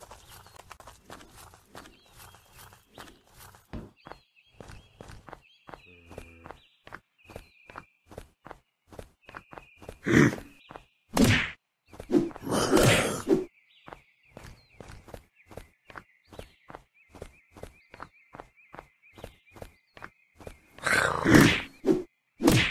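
Footsteps thud quickly and evenly on hard ground.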